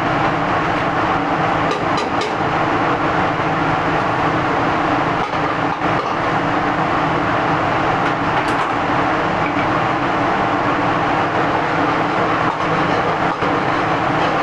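A metal ladle clinks against a wok.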